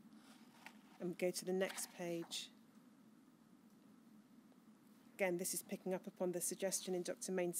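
A woman speaks calmly into a microphone, reading out.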